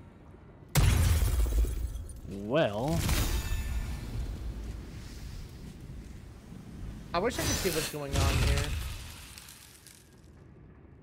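A magic spell bursts with a deep, rumbling whoosh.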